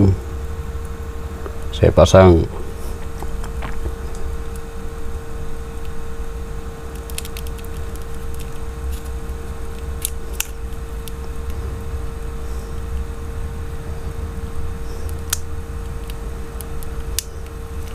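Metal tweezers tap and scrape against a small phone part.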